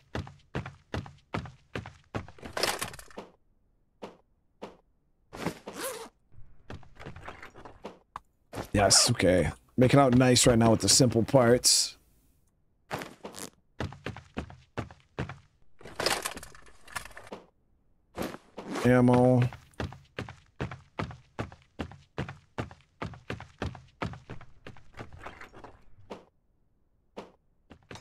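Footsteps thud on a wooden floor in a steady rhythm.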